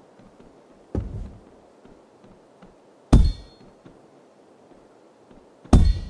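A game figure strikes a wobbling doll with loud thumping hits.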